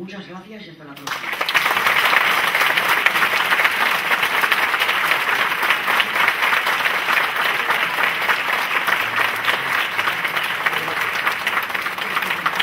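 An audience applauds loudly and steadily.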